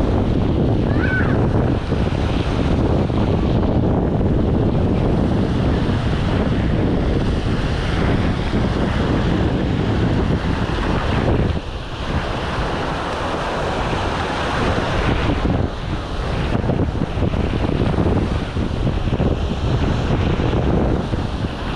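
Small waves wash onto the sand and break gently.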